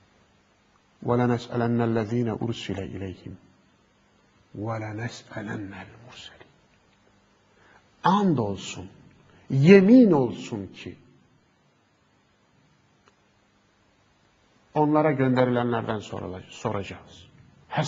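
A middle-aged man speaks calmly and earnestly into a close microphone, with pauses.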